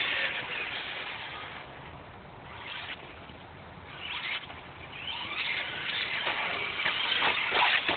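A small remote-control car's motor whirs in the distance outdoors.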